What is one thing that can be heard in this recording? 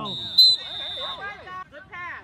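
A referee blows a sharp whistle blast.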